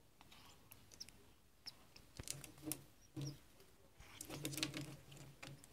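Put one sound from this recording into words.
A parrot close by makes low murmuring and clicking sounds.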